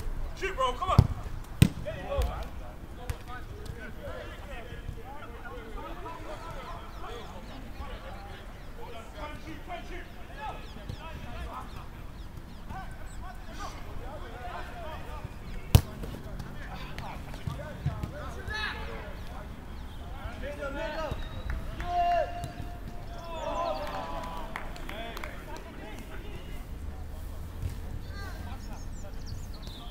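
Young men shout and call out across an open pitch.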